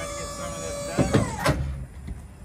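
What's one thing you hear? A metal liftgate clanks into place.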